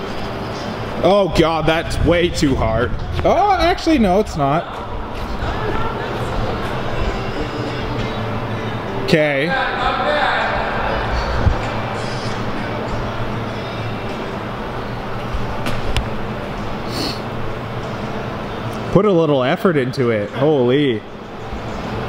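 A young man talks playfully close by in an echoing hall.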